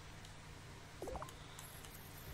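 A soft electronic chime sounds as a game menu opens.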